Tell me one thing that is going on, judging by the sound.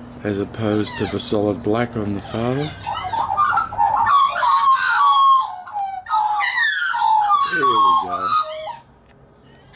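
Australian magpies carol together in a loud warbling chorus.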